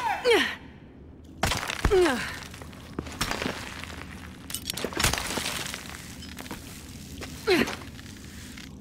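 A young woman grunts with effort.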